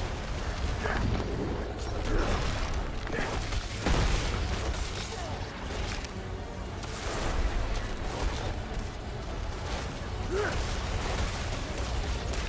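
Heavy blows and blasts crash repeatedly in a fierce fight.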